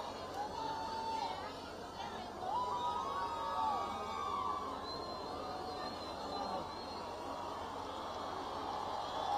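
Voices in a crowd scream and whoop with excitement.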